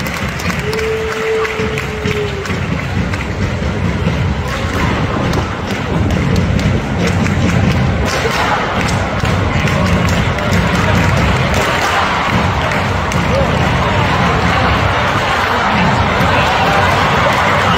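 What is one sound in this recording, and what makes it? A large stadium crowd roars and chants steadily, growing louder.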